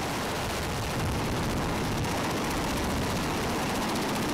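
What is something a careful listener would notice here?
Aircraft rotors roar loudly and steadily nearby.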